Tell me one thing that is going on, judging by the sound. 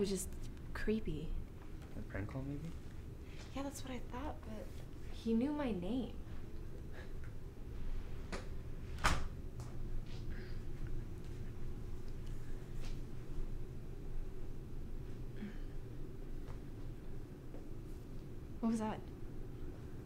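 A young woman speaks quietly and tensely, close by.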